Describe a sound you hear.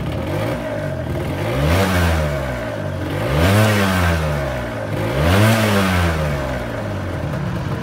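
A scooter engine revs up sharply and falls back, three times.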